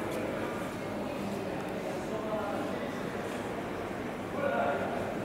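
Distant voices murmur and echo in a large hall.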